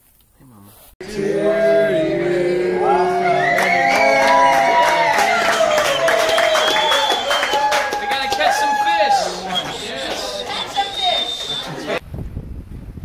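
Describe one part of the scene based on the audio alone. A group of people sings together loudly.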